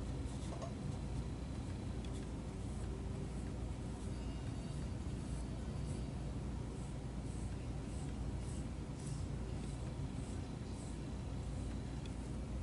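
A small sanding stick scrapes lightly in short, repeated strokes.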